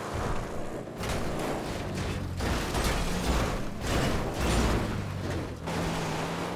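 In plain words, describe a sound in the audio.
A car crashes and rolls over with loud metal bangs and thuds.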